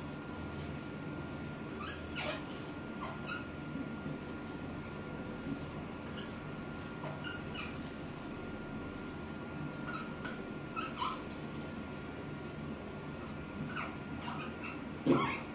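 A marker squeaks on a whiteboard.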